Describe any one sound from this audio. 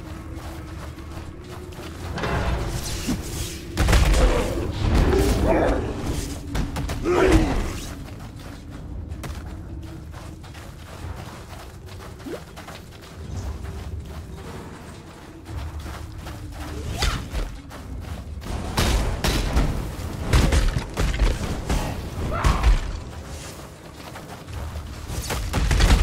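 Game combat sounds clash and burst as a character fights monsters.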